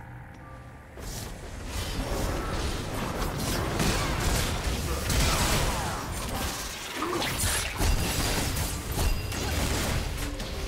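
Game spell effects whoosh and crackle in a fast fight.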